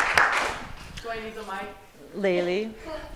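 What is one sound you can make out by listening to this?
A woman speaks into a microphone.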